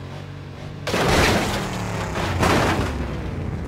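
A truck crashes hard into the ground.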